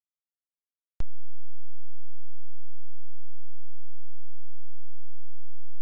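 A steady electronic tone drones.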